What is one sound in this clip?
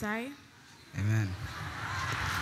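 A teenage boy answers briefly.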